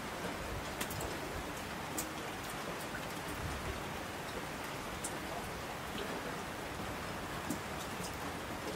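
Streams rush and roar down the slopes.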